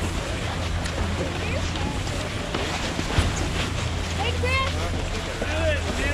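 Snowboards and skis scrape over packed snow.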